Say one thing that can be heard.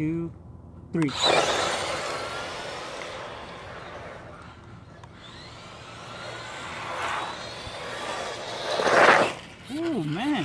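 Small tyres crunch and scatter loose gravel.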